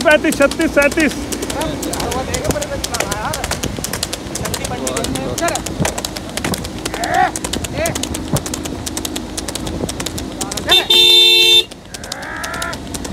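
Hooves clop steadily on a paved road.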